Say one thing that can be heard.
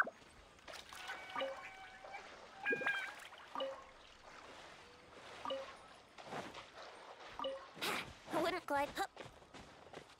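Soft chiming tones ring out as items are picked up.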